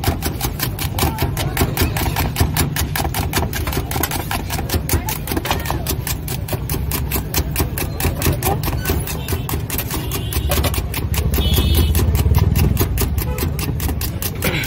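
Hands rapidly beat a thick batter in a metal bowl with quick, even, wet slaps.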